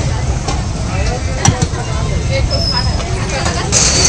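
A spoon scrapes and clinks in a tub.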